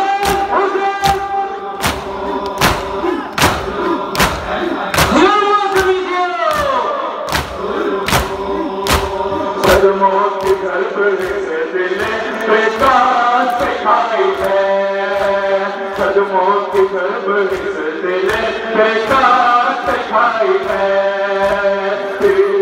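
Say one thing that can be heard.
A man chants loudly through loudspeakers.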